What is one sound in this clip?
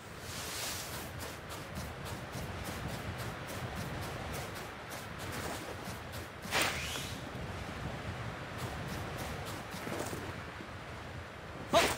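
Footsteps crunch quickly on snow as someone runs.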